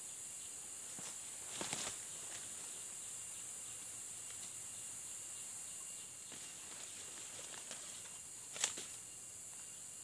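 Leaves and twigs rustle as a man moves through undergrowth.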